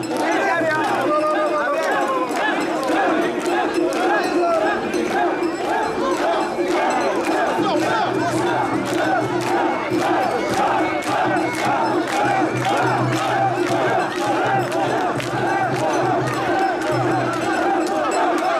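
A large crowd of men chants loudly in rhythm outdoors.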